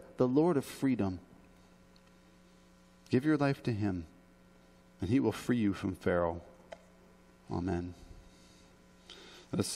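A man speaks with emphasis through a microphone, with pauses between phrases.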